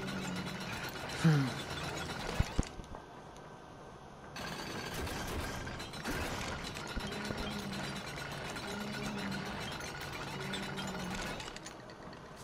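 A winch cranks with a rattling chain.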